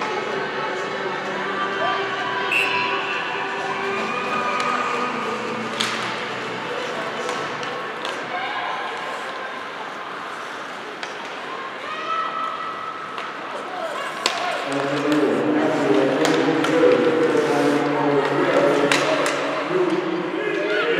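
Ice skates scrape and swish across the ice in a large echoing rink.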